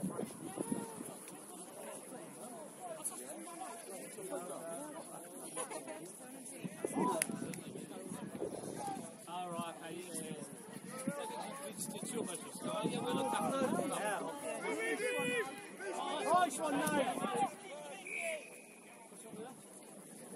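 Rugby players shout and call to each other across an open field, heard from a distance.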